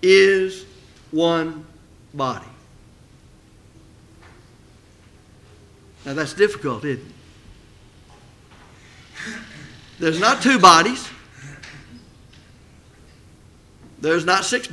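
An older man speaks calmly into a microphone, in short bursts with long pauses.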